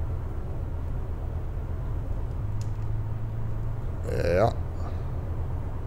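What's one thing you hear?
A bus engine hums low and steady while driving.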